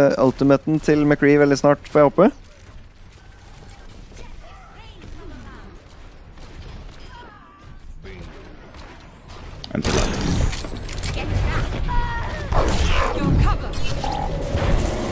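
Young men talk with animation over an online call.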